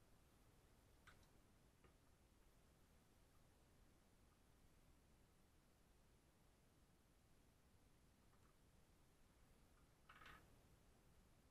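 Wire cutters snip through a wire with a sharp click.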